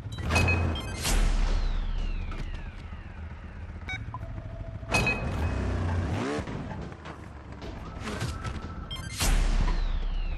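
A motorbike crashes with a loud thud.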